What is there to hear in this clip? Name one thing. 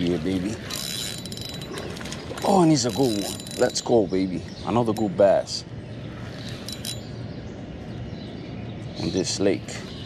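A spinning reel is cranked, its gears whirring.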